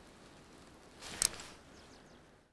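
A fishing line swishes sharply through the air.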